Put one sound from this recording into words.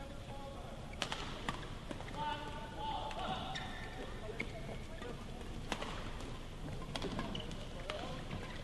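Badminton rackets hit a shuttlecock with sharp pops in a large echoing hall.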